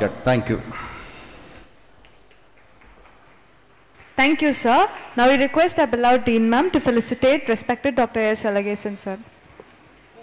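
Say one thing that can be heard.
A man speaks loudly through a microphone and loudspeakers in an echoing hall.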